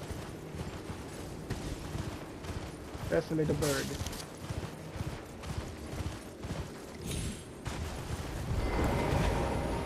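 Footsteps rustle through dry grass at a run.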